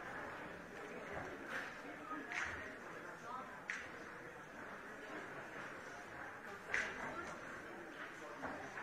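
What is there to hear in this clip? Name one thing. A crowd of men and women chatters in a large hall.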